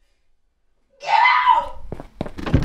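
A young woman cries out loudly nearby.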